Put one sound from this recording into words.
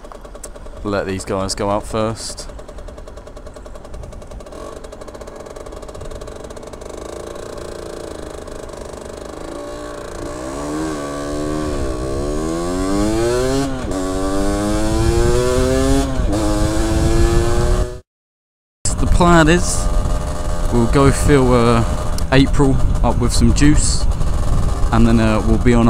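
A motorcycle engine revs, rising in pitch as it speeds up and dropping as the gears change.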